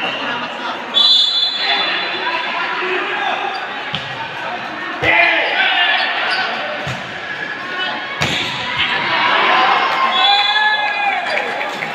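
A whistle blows shrilly.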